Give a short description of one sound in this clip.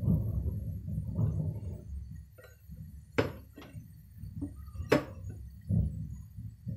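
A spatula stirs thick soup in a pot, scraping and sloshing.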